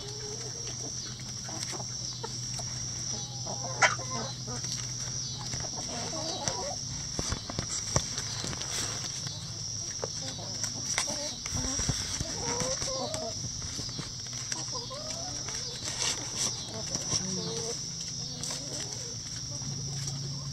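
Hens scratch and peck at dry straw and leaves.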